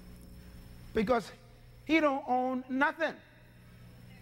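A man speaks loudly and with emphasis through a microphone.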